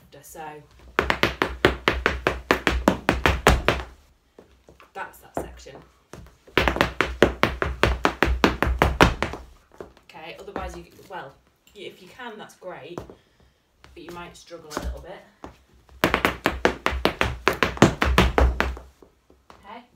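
Hard dance shoes click and stamp rapidly on a floor in quick bursts.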